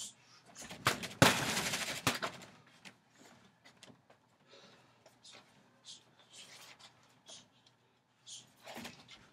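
Bare feet shuffle and thud on a wooden deck.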